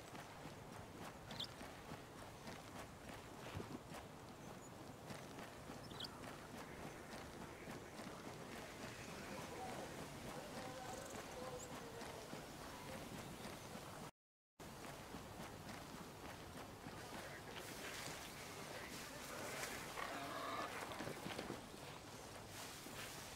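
Footsteps crunch quickly on gravel and dirt.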